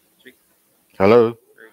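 A man exclaims loudly.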